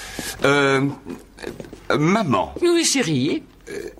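An older woman speaks.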